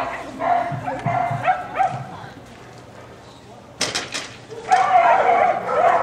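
A woman calls out commands to a dog outdoors.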